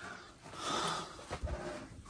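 A hand pats and shifts cardboard boxes.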